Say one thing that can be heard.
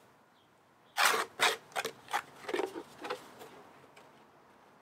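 A spatula scrapes mud out of a plastic tub.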